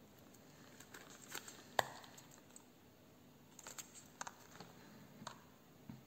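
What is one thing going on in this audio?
A plastic jar lid clicks and taps in a woman's hands.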